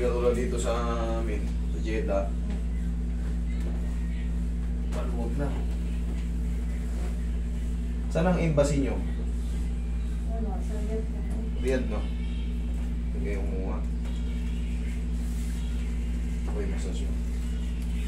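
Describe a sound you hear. A man speaks calmly in short phrases nearby.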